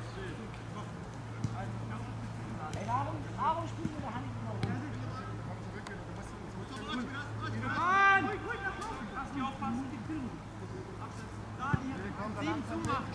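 Young men shout and call out across an open field.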